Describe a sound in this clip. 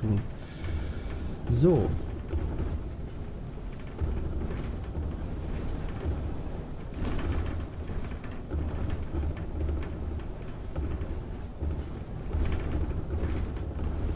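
Bus tyres rumble over a rough road.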